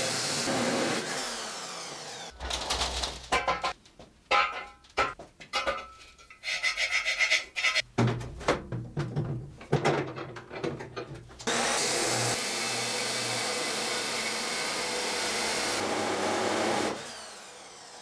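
An abrasive chop saw grinds loudly through steel.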